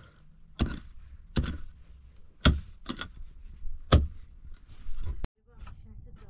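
A shovel digs into dry earth with scraping thuds.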